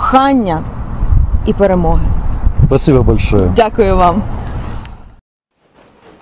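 A woman speaks calmly into a microphone close by.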